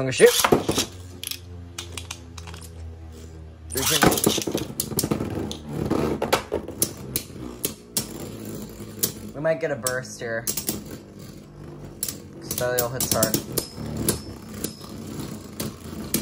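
A spinning top whirs steadily on a plastic dish.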